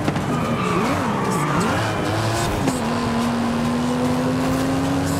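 A sports car engine roars, its pitch rising and falling as the car shifts gears.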